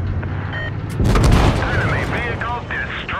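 A tank gun fires with a loud boom.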